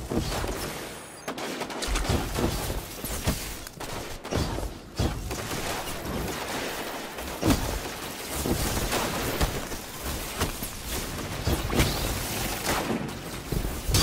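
Electric bolts crackle and zap in bursts.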